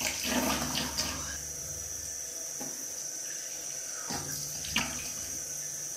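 Water splashes as a person rinses their face with cupped hands.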